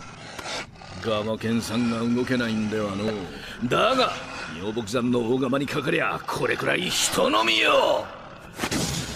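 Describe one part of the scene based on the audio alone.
An elderly man speaks fiercely and defiantly.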